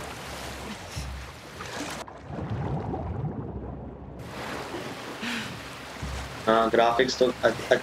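Water splashes as someone swims.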